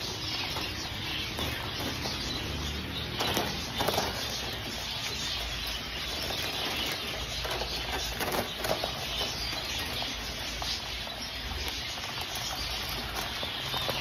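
Many pigeons coo and flutter close by.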